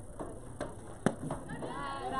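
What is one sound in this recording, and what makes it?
A softball bat cracks sharply against a ball.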